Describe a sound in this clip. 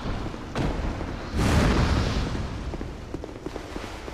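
A heavy blade swings with a loud whoosh and thud.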